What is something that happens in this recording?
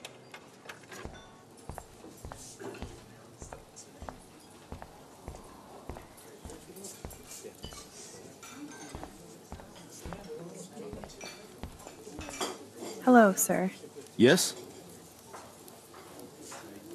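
Footsteps walk steadily across a hard floor.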